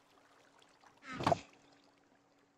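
A wooden chest thuds shut.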